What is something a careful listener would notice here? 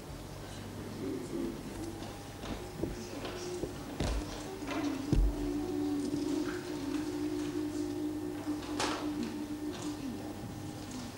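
A chamber choir of young voices sings a sustained piece.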